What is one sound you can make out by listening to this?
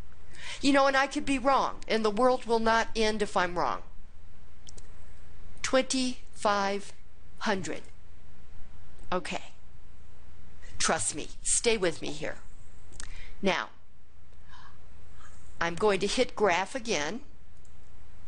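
An older man talks calmly through a microphone, in short bursts with pauses.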